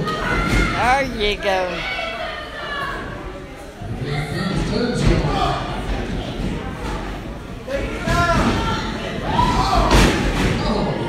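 Wrestlers' bodies slam onto the ring mat with heavy thuds.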